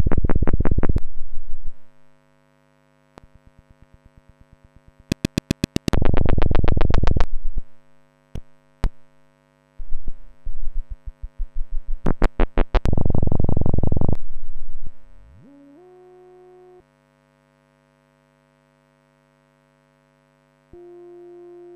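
A modular synthesizer plays harsh, glitchy pulsing tones that start and stop in bursts.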